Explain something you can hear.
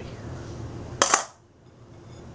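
A spatula scrapes against a metal bowl.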